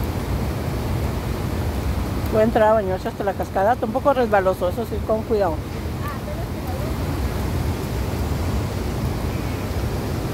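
Water rushes loudly over a weir and churns through rapids.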